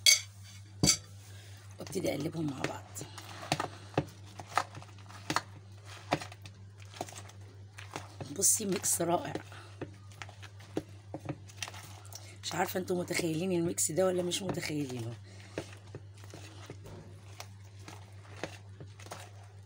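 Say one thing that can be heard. A spoon knocks and scrapes against a plastic bowl.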